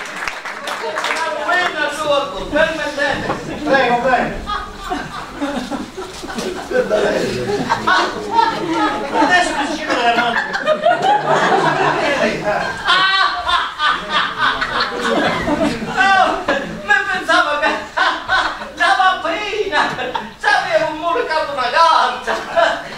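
An elderly man talks loudly and with animation.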